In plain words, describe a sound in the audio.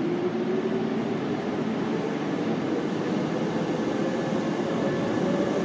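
A train's motor hums with a steady whine.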